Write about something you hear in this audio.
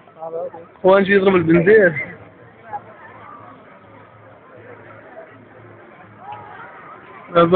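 A large outdoor crowd murmurs and chatters.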